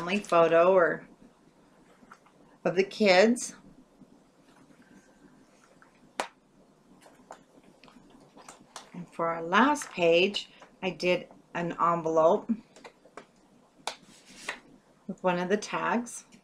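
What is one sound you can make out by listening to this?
Stiff paper rustles and taps softly as cards are handled.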